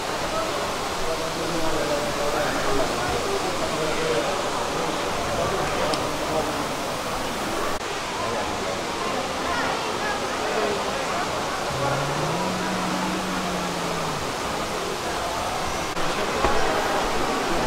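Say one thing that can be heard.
Many people chatter around in a large echoing hall.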